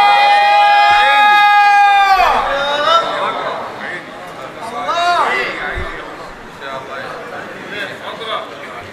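A man chants a long, held and wavering melody through a loudspeaker in an echoing hall.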